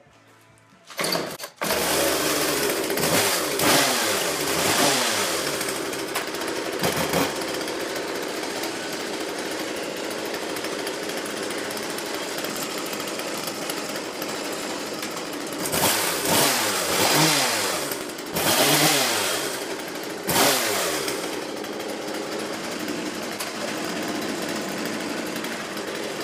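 A chainsaw engine sputters to life and runs loudly.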